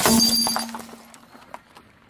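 A car tyre crushes candy with a crunch.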